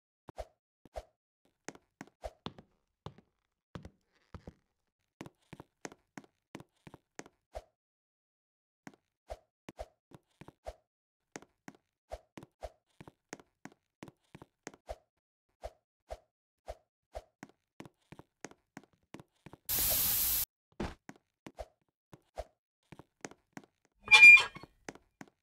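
Quick game footsteps tap and patter steadily.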